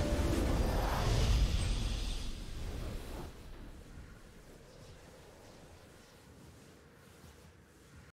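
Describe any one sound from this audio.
A triumphant game fanfare plays and fades.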